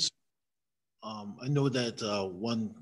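A second man answers calmly into a microphone.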